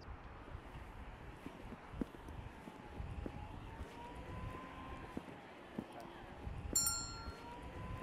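Footsteps tread on a pavement.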